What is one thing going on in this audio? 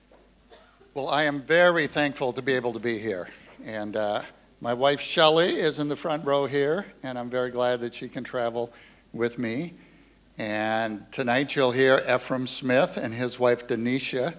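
A middle-aged man speaks calmly into a microphone, heard through loudspeakers in an echoing hall.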